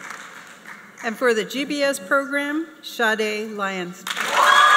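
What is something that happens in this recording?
A woman speaks into a microphone, reading out over loudspeakers in a large echoing hall.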